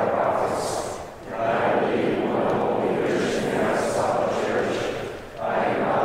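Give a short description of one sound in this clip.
A congregation recites together in unison, echoing in a large hall.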